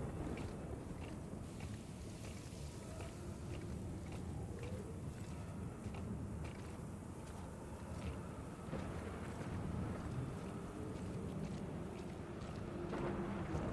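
Heavy boots crunch on snow in slow, regular steps.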